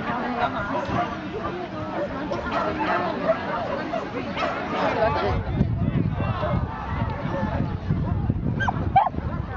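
A crowd chatters outdoors nearby.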